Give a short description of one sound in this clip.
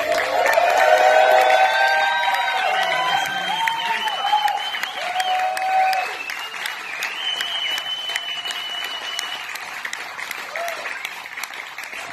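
An acoustic guitar strums a steady rhythm.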